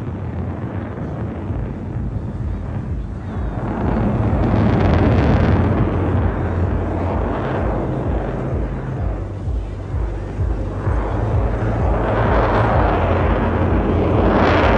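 A jet engine roars overhead, rising and falling as the aircraft turns.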